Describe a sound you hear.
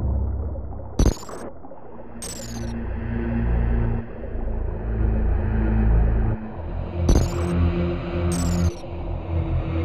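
A monster lets out shrill, falling shrieks.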